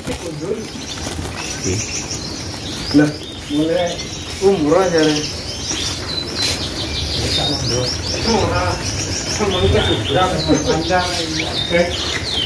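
Many small birds chirp and twitter close by.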